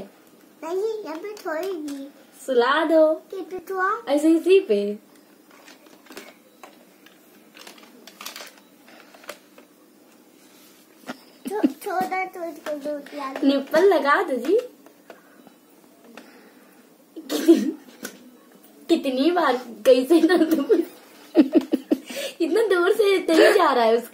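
A plastic toy bottle rattles and clicks in a child's hands.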